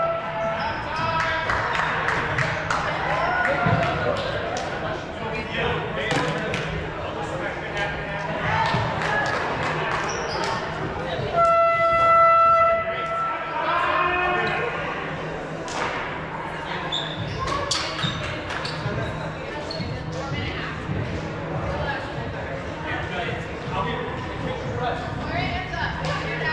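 Young women and men shout and call out across a large echoing hall.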